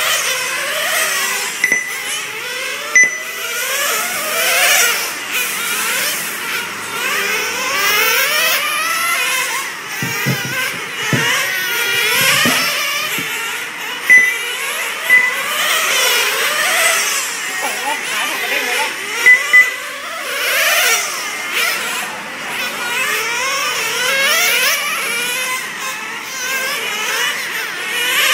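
Several nitro-engined radio-controlled cars race around a track, their small engines screaming and revving.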